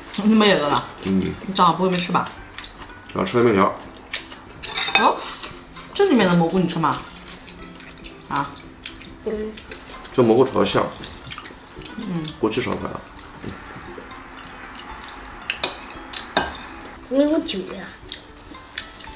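Chopsticks clink against bowls.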